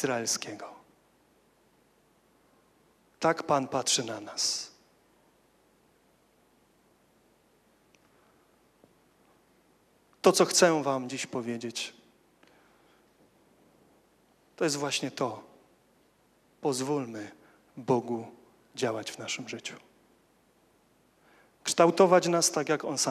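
A young man speaks calmly into a microphone, with pauses between phrases.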